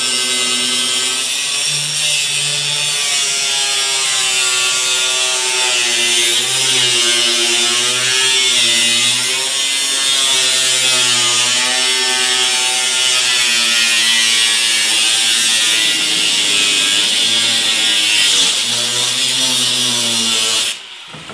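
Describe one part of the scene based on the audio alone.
An angle grinder whines loudly as it grinds metal, its pitch dipping under load.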